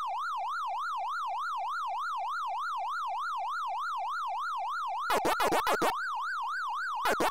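An arcade game's electronic siren warbles rapidly up and down.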